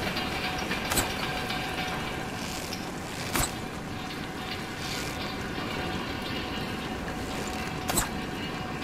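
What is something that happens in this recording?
Metal clanks sharply a few times.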